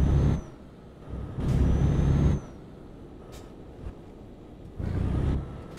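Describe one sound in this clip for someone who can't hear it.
A truck engine rumbles at low speed.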